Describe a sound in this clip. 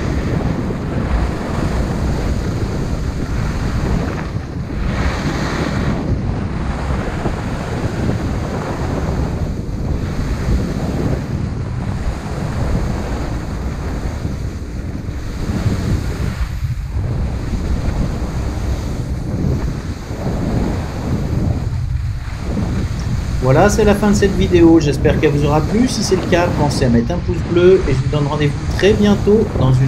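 Skis hiss and scrape over hard snow.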